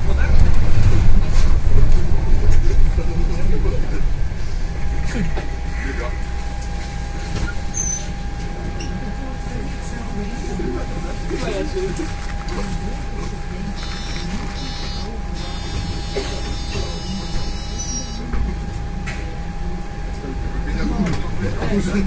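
A bus engine rumbles low and steady while slowing down.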